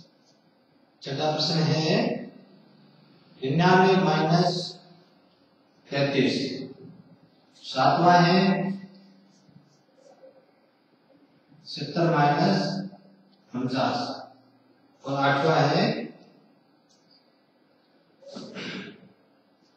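A man speaks loudly and clearly in short phrases, pausing between them.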